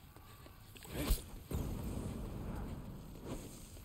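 A fiery blast bursts and roars.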